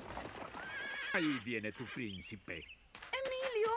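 A man laughs mockingly.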